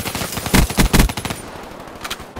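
Rapid gunshots ring out loudly.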